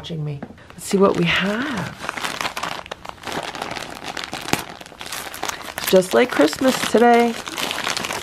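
Wrapping paper crinkles and tears as hands unwrap a gift.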